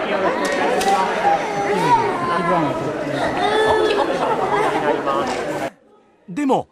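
A toddler cries loudly up close.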